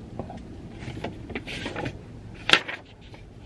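Magazine pages rustle and flip.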